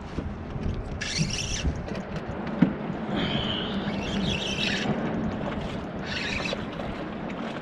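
A fishing reel whirs as its line is wound in.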